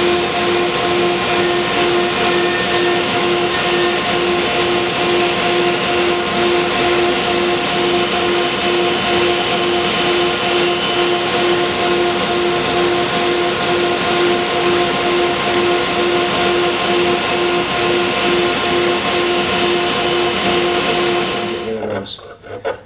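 A band saw hums and whines steadily as it cuts through wood.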